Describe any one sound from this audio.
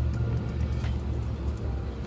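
A metal tailgate step clunks as it is pushed shut.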